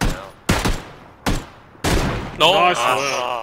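Rifle shots ring out sharply, one after another.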